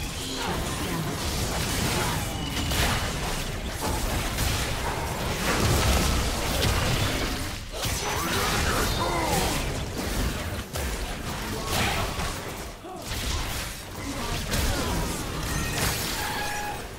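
Game spell effects crackle and blast rapidly during a fight.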